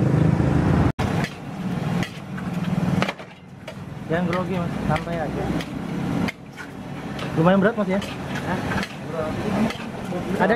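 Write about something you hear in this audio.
A metal spatula scrapes and tosses rice in a large metal wok.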